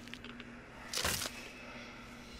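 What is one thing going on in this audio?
A heavy blow thuds during a struggle.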